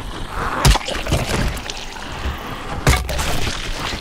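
Heavy blows land with hard, wet thuds.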